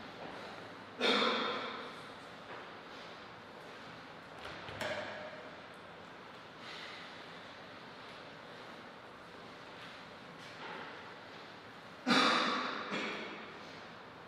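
A man speaks briefly in an echoing hall.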